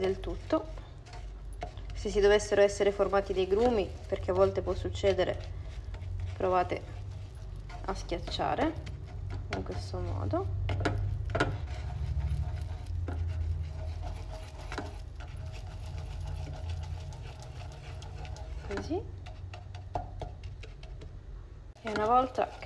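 A wooden spoon stirs thick sauce in a pan.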